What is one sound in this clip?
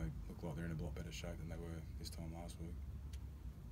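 A man speaks calmly into a microphone at close range.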